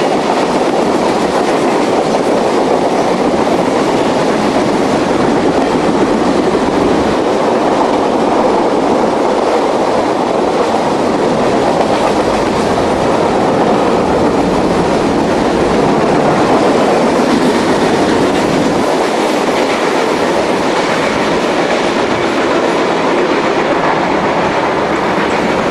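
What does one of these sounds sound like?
A long freight train rumbles and rattles steadily past close by.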